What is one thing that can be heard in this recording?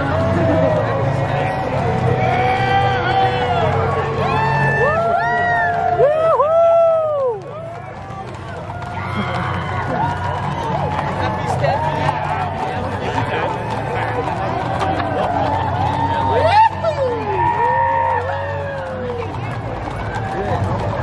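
Horses' hooves clop on pavement.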